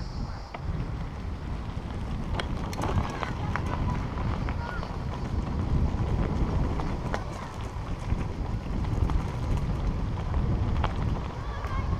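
Tyres crunch and crackle over gravel.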